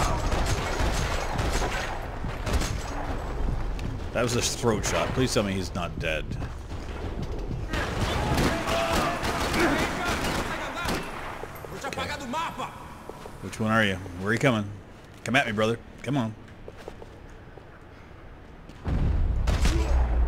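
Gunshots fire in rapid bursts, echoing in a large concrete space.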